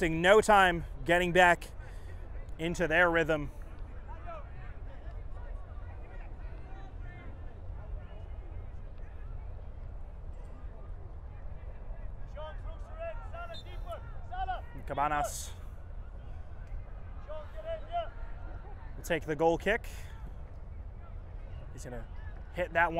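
Young men shout calls across an open outdoor field.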